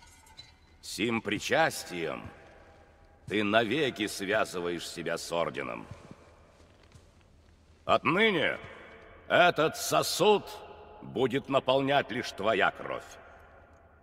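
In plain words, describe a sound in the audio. An elderly man speaks slowly and gravely, close by, in a large echoing hall.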